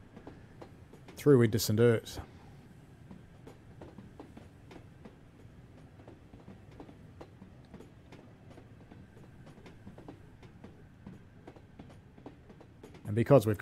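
A train rumbles and clatters along a track.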